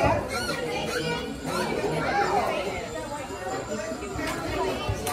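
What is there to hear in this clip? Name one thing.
Children and adults chatter nearby in a busy room.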